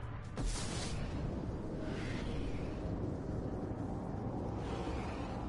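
A spaceship's engines roar steadily.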